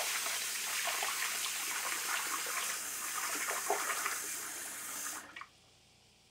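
Tap water runs into a sink.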